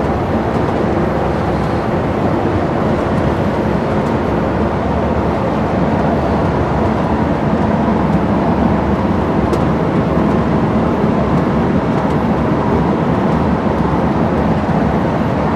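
A vehicle's engine rumbles steadily from inside as it drives along.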